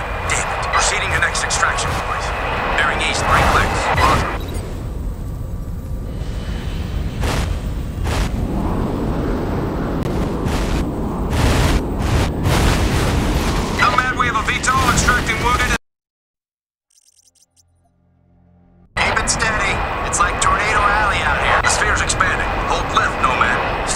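Wind howls outdoors in a storm.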